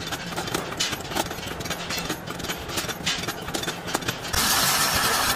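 Metal shears snip through sheet steel.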